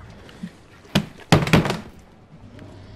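A heavy body thuds onto the ground.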